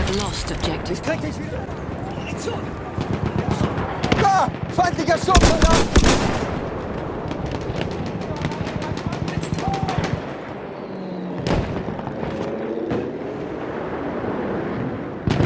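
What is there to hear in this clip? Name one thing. Rifles fire in rapid cracks close by and in the distance.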